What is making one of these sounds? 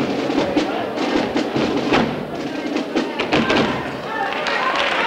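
Feet stamp and shuffle on a wooden stage.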